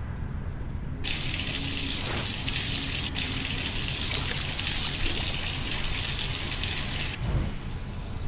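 Water pours steadily from a tap into a tub.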